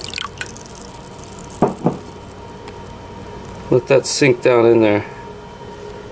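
Water bubbles gently.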